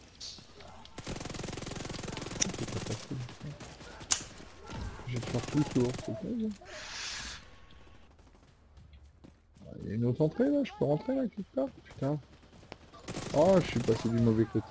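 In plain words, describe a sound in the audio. Gunfire crackles in rapid bursts.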